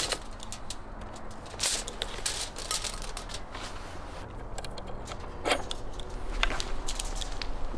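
Metal rods clink and rattle as a roasting spit is handled.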